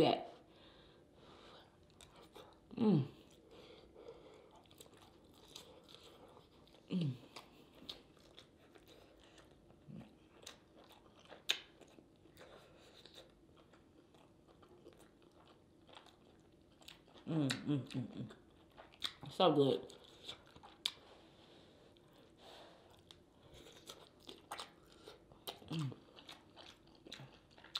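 A woman chews and smacks her lips wetly up close.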